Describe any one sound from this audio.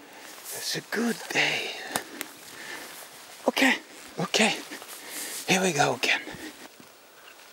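Footsteps crunch through dry twigs and needles close by.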